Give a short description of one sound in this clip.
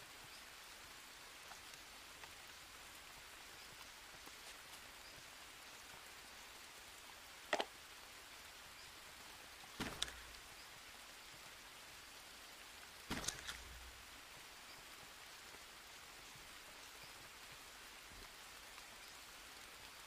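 Heavy rain pours steadily on dense foliage.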